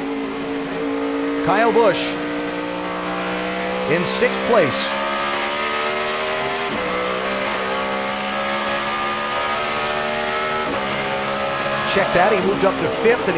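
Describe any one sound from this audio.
A race car engine roars steadily at high speed, shifting gears now and then.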